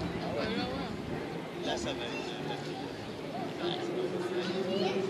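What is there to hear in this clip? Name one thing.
A crowd of spectators chatters outdoors, with many men's and women's voices nearby and far off.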